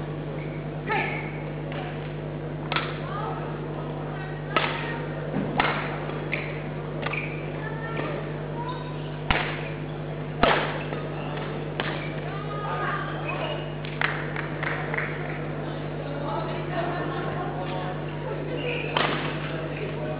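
Shuttlecocks are struck with sharp pops of badminton rackets.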